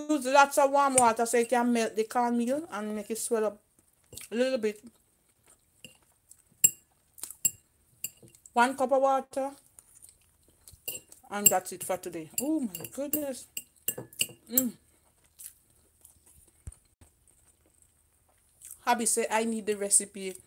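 A fork clinks and scrapes against a ceramic plate.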